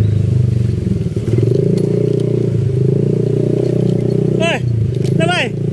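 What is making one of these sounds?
A motorbike engine idles with a steady, throbbing rumble close by.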